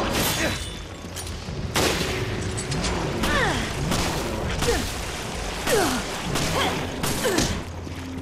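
A monster screeches and snarls loudly.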